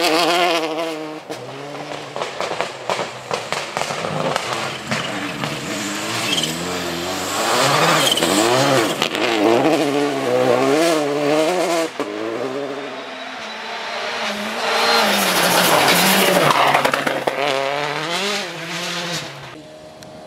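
Gravel sprays and crackles under spinning tyres.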